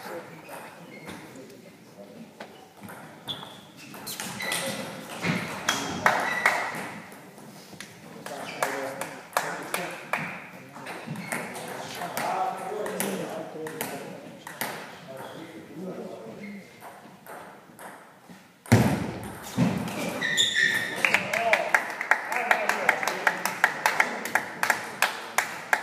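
A table tennis ball clicks rapidly back and forth between paddles and a table in an echoing hall.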